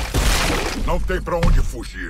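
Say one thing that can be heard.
A tree crashes down.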